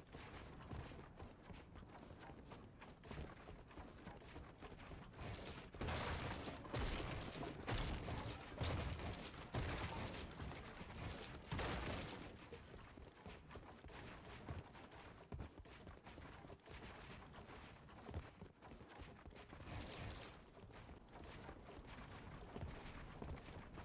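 Wooden walls and ramps are rapidly built with quick clattering thuds.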